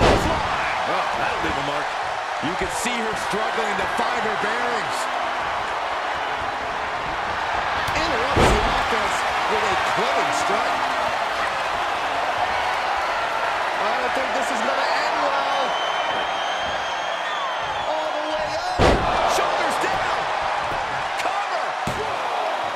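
A large crowd cheers and roars steadily in a big arena.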